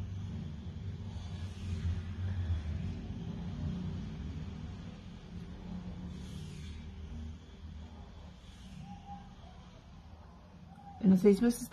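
A brush softly strokes paint onto fabric.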